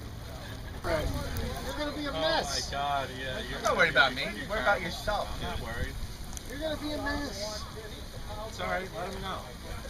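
A man talks and laughs nearby.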